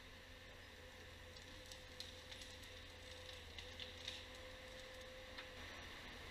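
Branches and wood crack and snap as a forestry machine handles a tree trunk.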